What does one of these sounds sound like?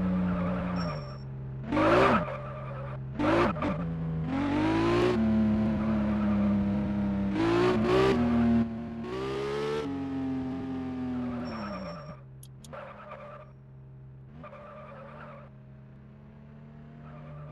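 A video game sports car engine revs up and down as the car drives.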